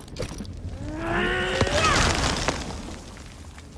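An explosion booms with a roar.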